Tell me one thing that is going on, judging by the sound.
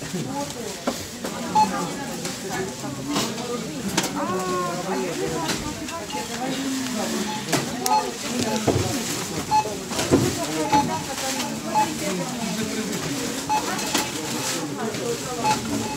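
A checkout scanner beeps again and again.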